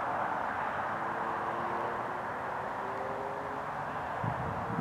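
A steam train whistle sounds far off.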